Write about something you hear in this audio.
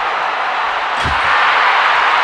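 A heavy hammer thuds onto the ground.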